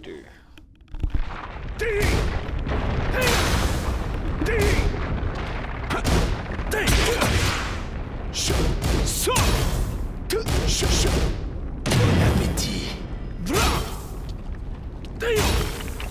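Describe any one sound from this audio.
Punches and kicks land with sharp, heavy thuds, over and over.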